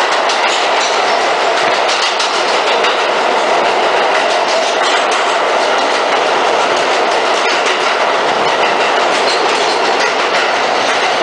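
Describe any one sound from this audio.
A subway train rumbles and roars loudly along the tracks.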